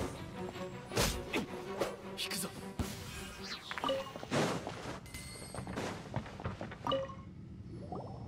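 Sword strikes whoosh and crash in quick bursts.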